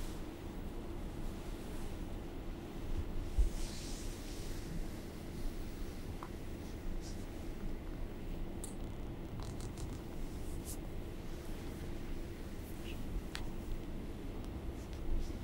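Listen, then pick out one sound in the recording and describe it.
Feet shuffle softly on a floor.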